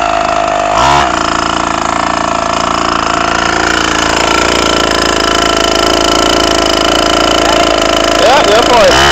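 A 49cc mini dirt bike engine idles.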